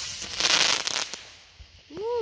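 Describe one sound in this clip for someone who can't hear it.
Fireworks crackle and pop in the distance.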